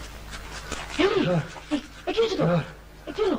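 A young man cries out in pain.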